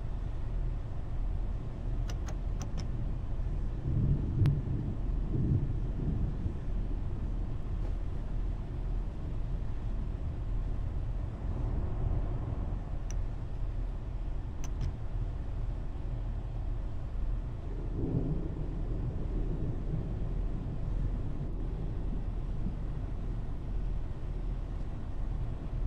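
A train engine hums steadily with a low rumble.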